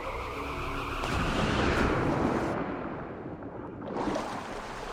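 Water bubbles and rushes underwater.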